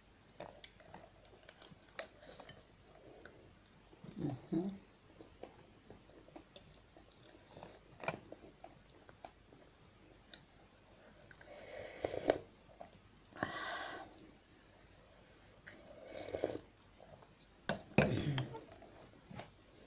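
A woman chews and slurps food close by.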